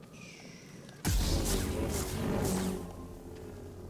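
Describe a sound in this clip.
A sudden loud whoosh and blast bursts out, then fades.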